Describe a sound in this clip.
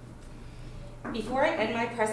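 A woman speaks clearly nearby.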